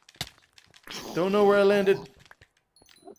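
A zombie groans in a low, rasping voice.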